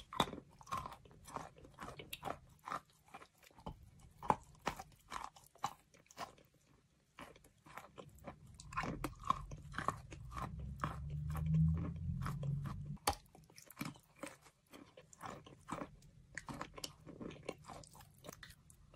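A young woman chews soft food close to a microphone, with wet smacking sounds.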